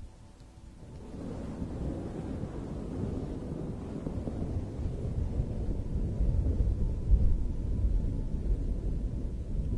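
Fingernails scratch and rub a fuzzy microphone cover up close, with a soft muffled rustle.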